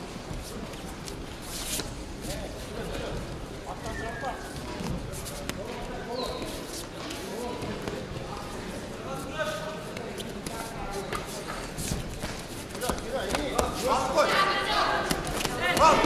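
Bare feet shuffle on a judo mat.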